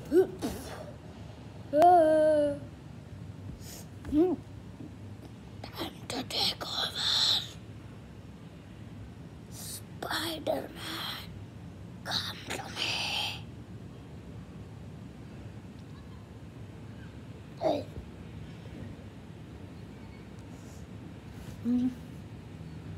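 A boy speaks with animation close by.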